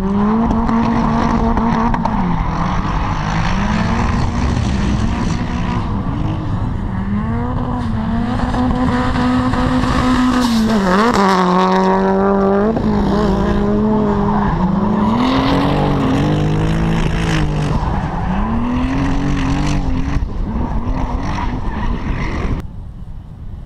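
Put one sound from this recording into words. Car engines rev loudly and rise and fall as the cars drift around a track, outdoors.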